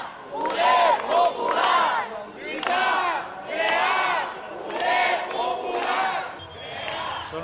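A crowd of protesters chants loudly in rhythm outdoors.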